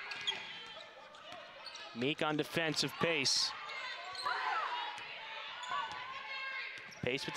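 A basketball thumps as it is dribbled on the court.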